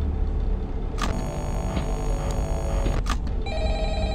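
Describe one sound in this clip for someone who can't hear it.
Loud crackling static hisses.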